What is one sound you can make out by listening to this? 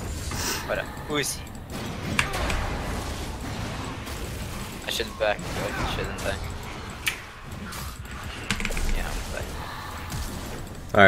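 Fantasy battle sound effects clash, zap and crackle in quick bursts.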